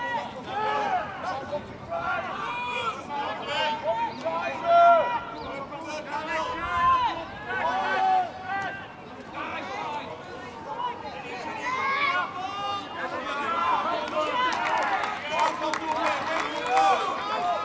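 Young men shout calls to one another across an open field.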